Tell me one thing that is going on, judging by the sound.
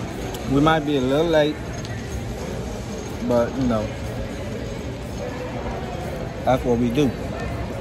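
A young man speaks casually and close by, in short bursts.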